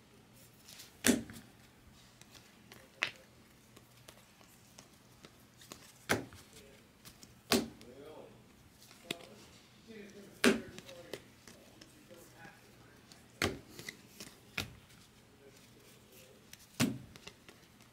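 Trading cards flick and snap as they are shuffled by hand.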